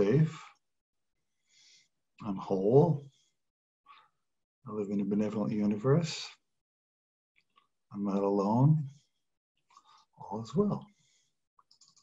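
An older man speaks calmly and close to the microphone, with pauses.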